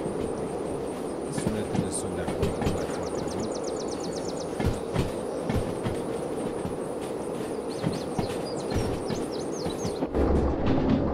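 Freight wagons clatter and clack over rail joints.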